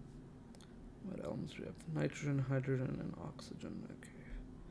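A man speaks calmly into a microphone, heard close up.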